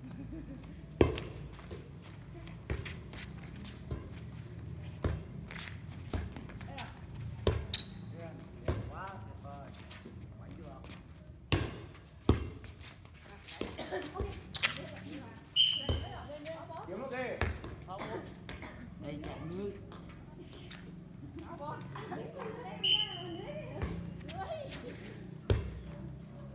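A volleyball is bumped and smacked back and forth with sharp thuds.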